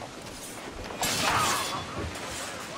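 A sudden burst of scuffling and blows rings out.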